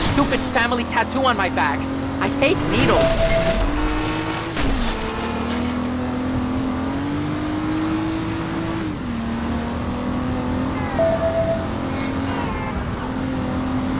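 A car engine revs steadily, rising and falling as the car shifts gears.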